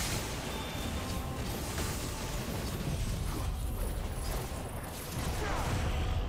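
Fiery magic blasts roar and crackle.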